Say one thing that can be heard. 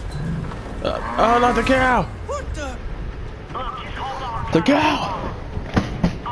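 A man shouts loudly with excitement.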